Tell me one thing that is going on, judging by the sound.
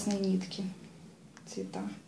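A plastic-covered card rustles as it is handled.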